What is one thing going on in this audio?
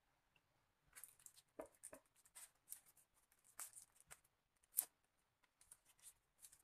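A thin plastic bag rustles and crinkles as hands handle it.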